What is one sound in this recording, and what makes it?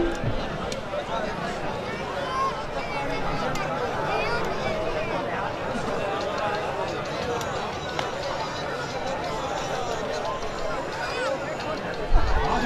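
A large outdoor crowd of men murmurs and chatters all around.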